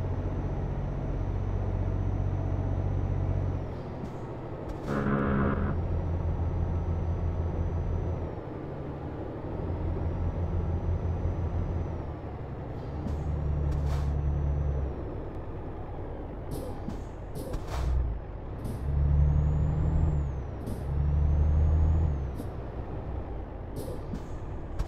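A truck engine hums steadily and rises and falls in pitch as it changes gear.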